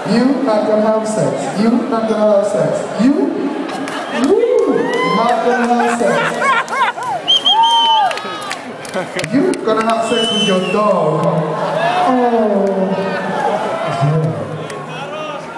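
A man raps loudly into a microphone over a loudspeaker.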